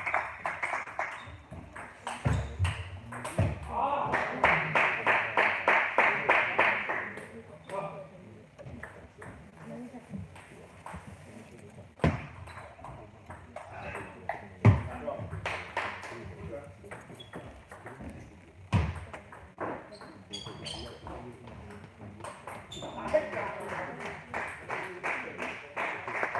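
A table tennis ball clicks back and forth between paddles and the table in an echoing hall.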